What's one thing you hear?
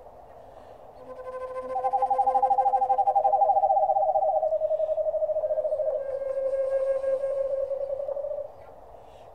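A man blows a trilling whistle call that slowly drops in pitch.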